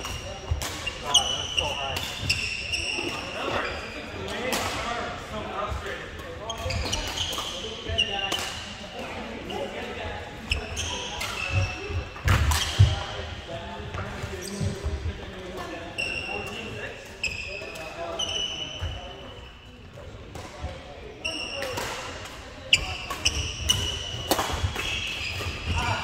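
Shuttlecocks are struck sharply with rackets again and again in a large echoing hall.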